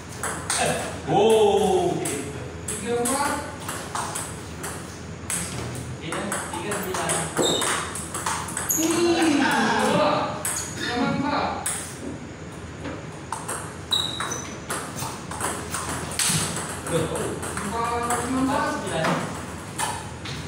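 A man talks and calls out nearby in an echoing room.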